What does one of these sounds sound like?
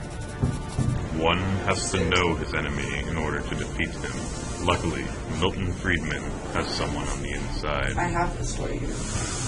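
A young man speaks calmly in a room.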